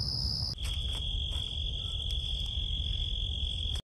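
A squirrel rustles through dry leaves.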